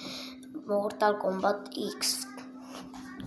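A boy speaks close to the microphone with animation.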